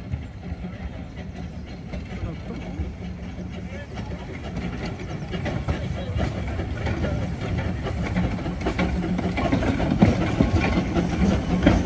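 A small steam locomotive chuffs steadily as it draws nearer and grows louder.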